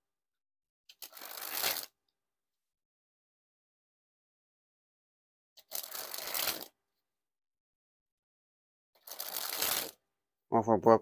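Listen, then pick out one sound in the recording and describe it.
Playing cards flutter rapidly as they spring from one hand to the other.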